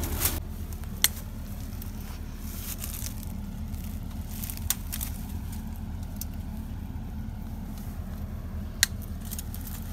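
Pruning shears snip stems with sharp clicks.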